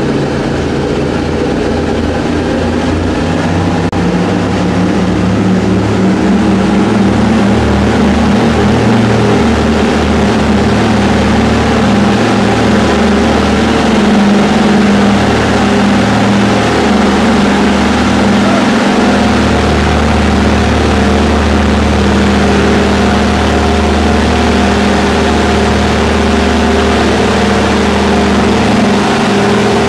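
Aircraft engines drone loudly and steadily close by.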